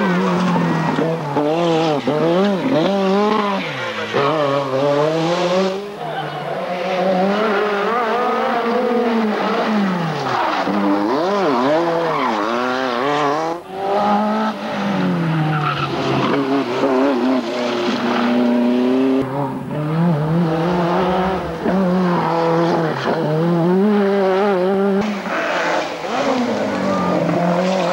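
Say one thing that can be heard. Rally car engines roar and rev hard, rising and falling in pitch.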